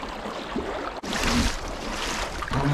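Water splashes around a man wading through a stream.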